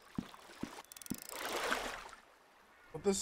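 A fishing line's float splashes into water.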